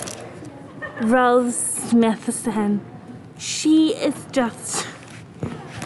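A young girl laughs close by.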